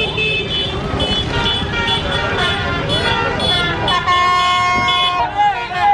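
A crowd of men and women shouts and cheers outdoors.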